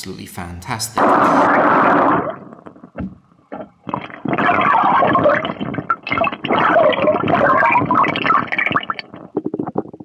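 Water splashes and gushes loudly.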